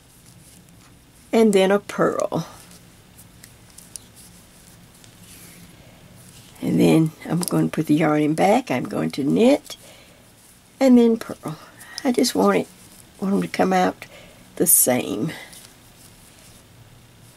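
Metal knitting needles click softly against each other.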